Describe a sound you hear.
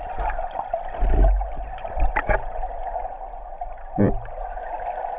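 Stones knock and clatter underwater.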